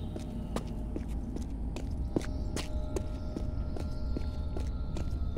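Footsteps thud on stone steps at a steady pace.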